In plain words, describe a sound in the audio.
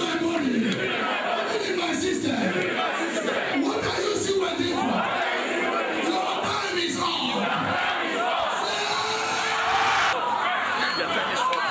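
A man speaks with animation into a handheld microphone, heard through loudspeakers.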